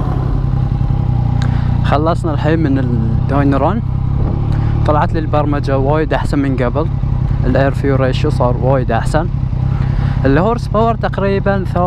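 A motorcycle accelerates repeatedly, its engine rising and falling as it changes gear.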